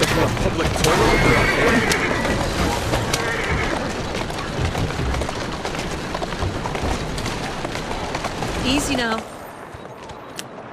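Horse hooves clop steadily on stone.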